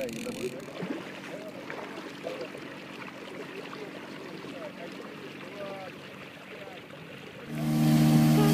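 Water splashes softly against the bow of a moving boat.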